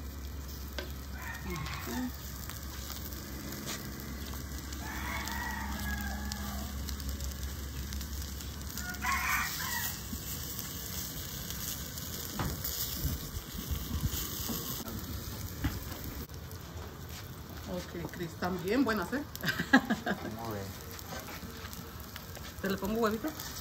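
Food sizzles softly on a hot griddle.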